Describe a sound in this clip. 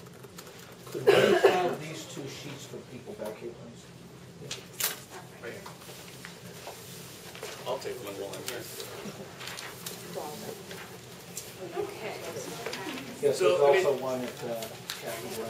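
A middle-aged man speaks calmly and haltingly nearby.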